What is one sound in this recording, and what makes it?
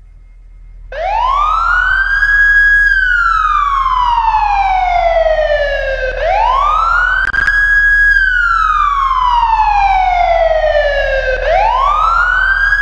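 A police siren wails loudly, rising and falling over and over.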